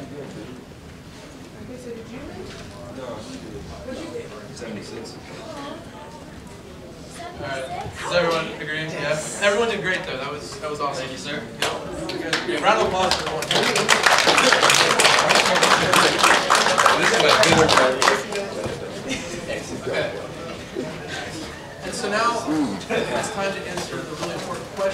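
A man speaks to a room of listeners.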